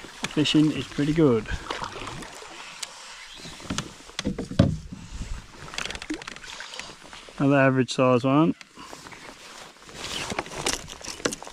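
A fish splashes and thrashes in water close by.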